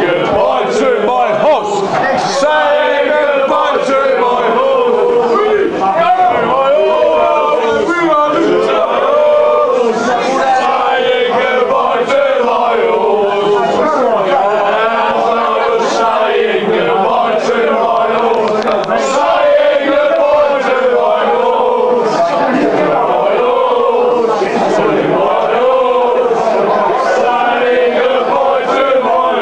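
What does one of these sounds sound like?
A group of men sing loudly together, close by.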